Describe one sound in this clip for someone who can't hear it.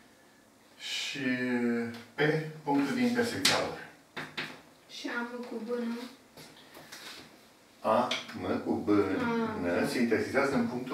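An elderly man speaks calmly and clearly, close by, as if lecturing.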